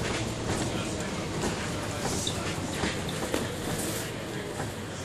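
Loose fittings rattle inside a moving bus.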